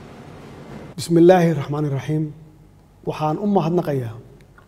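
A man speaks calmly and formally into a microphone, close by.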